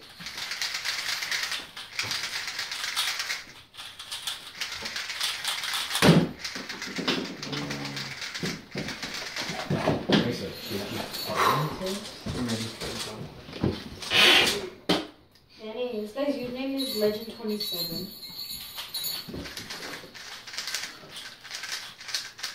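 Plastic puzzle cubes click and rattle as they are twisted quickly.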